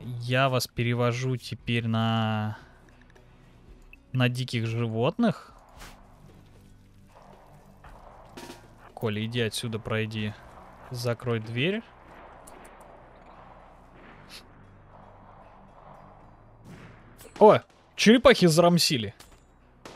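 A young man talks with animation, close to a microphone, in bursts with pauses.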